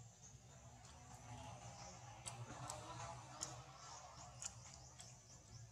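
A baby monkey chews on a leaf.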